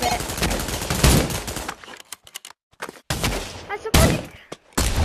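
A rifle fires loud shots that echo briefly.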